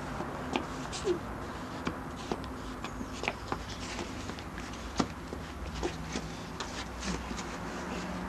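A toddler makes small babbling sounds close by.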